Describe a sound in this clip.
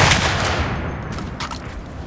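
Cartridges click into a rifle from a stripper clip.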